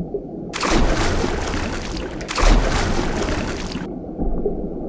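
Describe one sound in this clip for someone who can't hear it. Water splashes as a shark leaps out of the sea.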